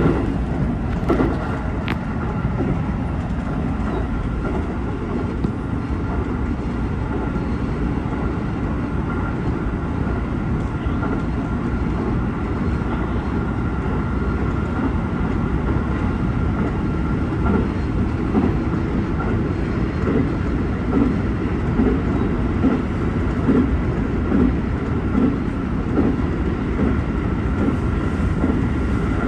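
A train rumbles steadily along the tracks, heard from inside the cab.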